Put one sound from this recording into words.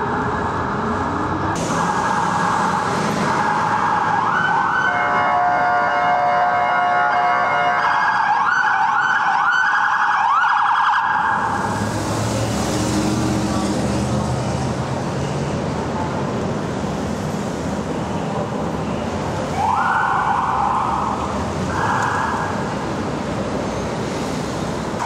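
City traffic rumbles steadily.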